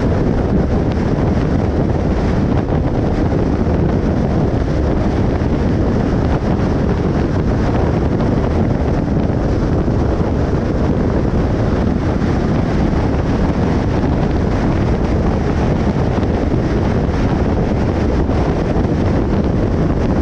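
Road noise and wind roar steadily from a car driving fast on a highway.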